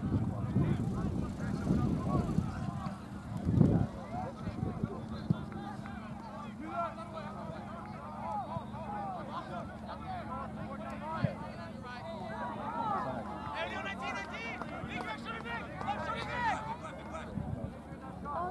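Young players call out to each other in the distance across an open field.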